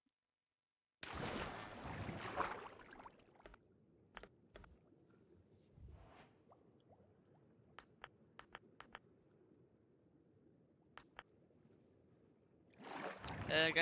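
Water splashes, then bubbles and gurgles steadily.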